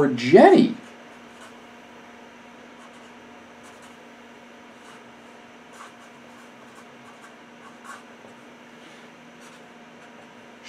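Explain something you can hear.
A marker squeaks softly as it writes.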